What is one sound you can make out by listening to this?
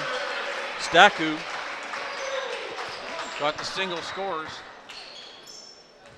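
A volleyball is spiked hard in an echoing gym.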